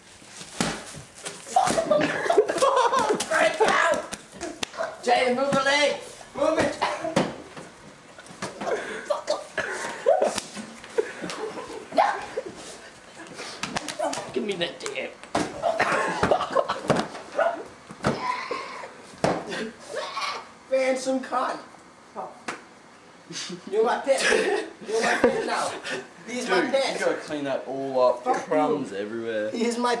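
Young men shout and laugh excitedly nearby.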